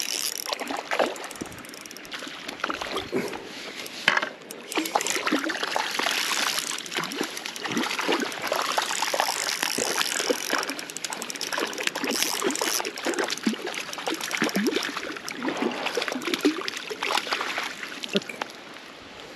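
A fish splashes and thrashes in the water close by.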